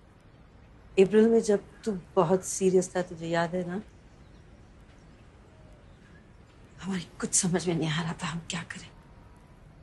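A middle-aged woman speaks gently and closely.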